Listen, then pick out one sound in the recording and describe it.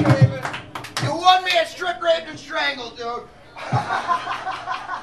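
A man sings into a microphone with a rough voice.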